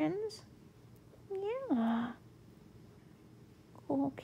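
A hand strokes a cat's fur softly.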